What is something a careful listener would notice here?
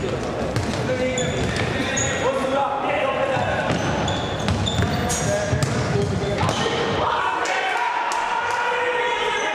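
A ball thuds as it is kicked, echoing in a large hall.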